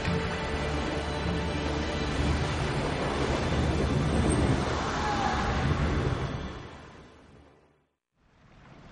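A magical whirlwind roars loudly, then fades away.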